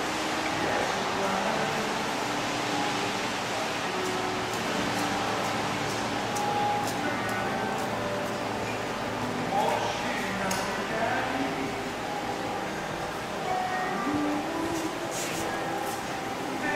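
Rain falls steadily on a wet street outdoors.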